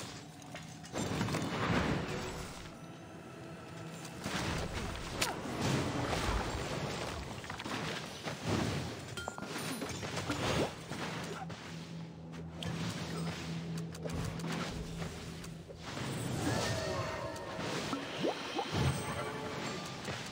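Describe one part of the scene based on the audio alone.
Magic spells whoosh and burst in quick succession.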